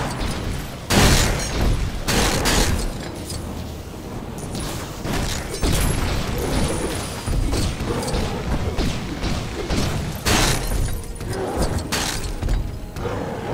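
Blocks smash and clatter apart in loud bursts.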